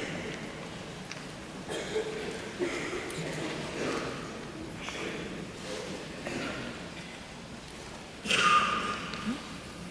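A woman sings a solo with a strong voice.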